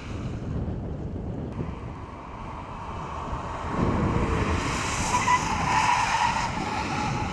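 Tyres hiss and splash on a wet surface.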